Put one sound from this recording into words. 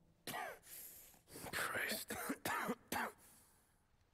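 A man speaks tensely and with emotion, close by.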